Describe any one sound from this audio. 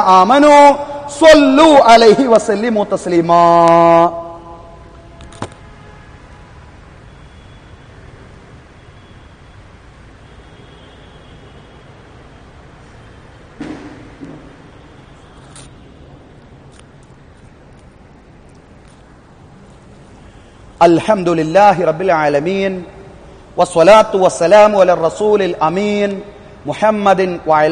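A man chants loudly in a drawn-out, melodic voice through a microphone, with long pauses.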